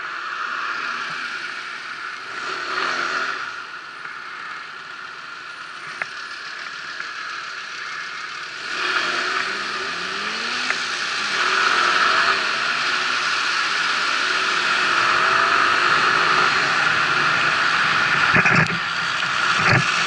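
An engine idles and then revs as a vehicle pulls away.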